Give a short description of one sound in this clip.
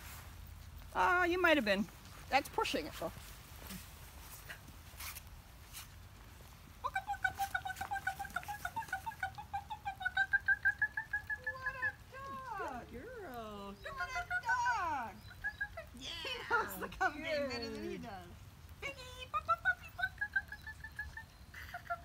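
A woman talks to dogs in a high, cheerful voice outdoors.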